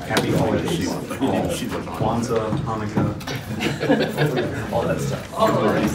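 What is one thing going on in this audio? High heels click on a hard floor.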